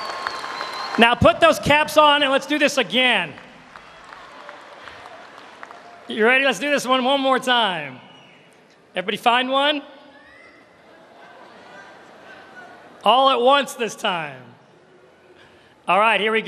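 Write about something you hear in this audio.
A man speaks loudly through a loudspeaker in a large echoing hall.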